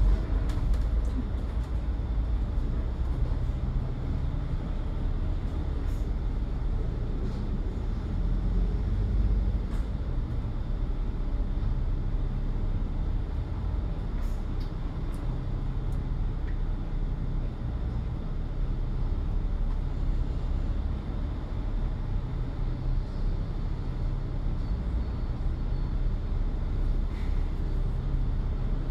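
A bus engine rumbles steadily from close by.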